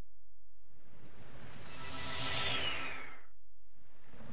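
A sparkling magical chime sweeps downward as a beam of light lands.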